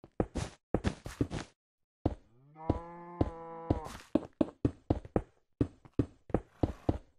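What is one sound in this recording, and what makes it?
Stone blocks crack and crumble as they are broken.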